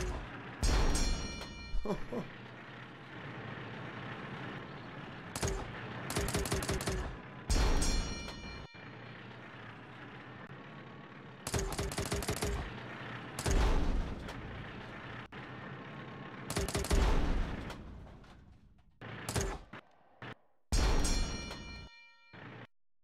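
Cannon shots boom and explode in a video game.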